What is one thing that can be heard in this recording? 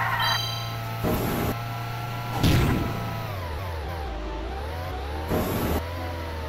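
A kart's boost fires with short loud whooshes.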